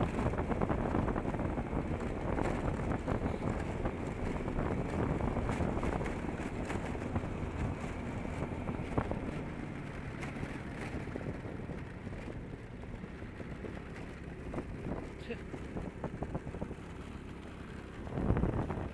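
Wheels roll and rumble over rough asphalt.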